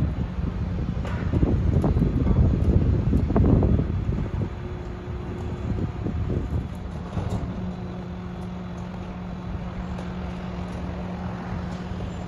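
Machinery on a garbage truck clanks and whines.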